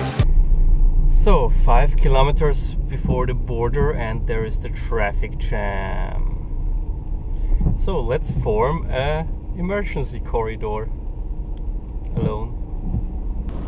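A young man talks calmly inside a car.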